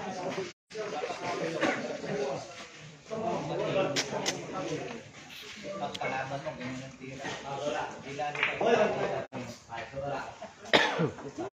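Men talk casually nearby.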